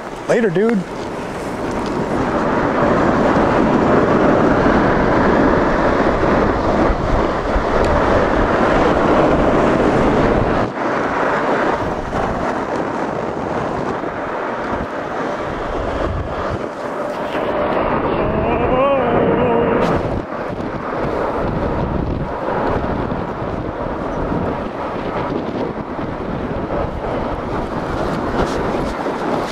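Wind rumbles and buffets close by outdoors.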